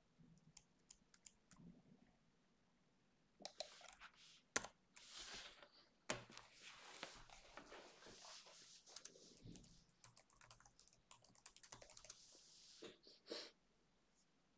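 Keys clatter on a computer keyboard.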